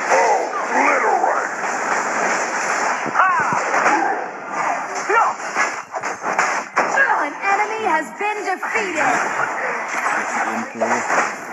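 Sword slashes and magic impact sounds from a video game clash rapidly.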